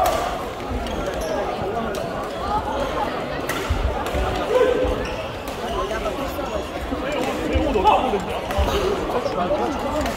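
Many voices chatter in a large echoing hall.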